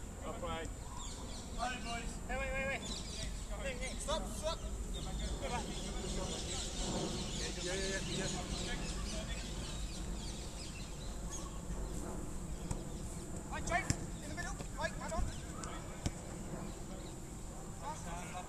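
Men shout and call out to each other outdoors across a playing field.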